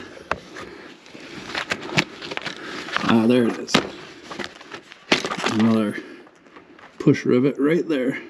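Gloved hands rub and knock against metal parts close by.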